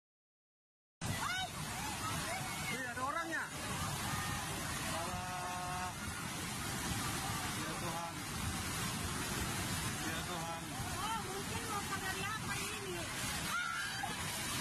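Floodwater roars and churns loudly.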